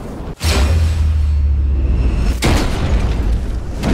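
Stone walls crumble and rubble crashes down.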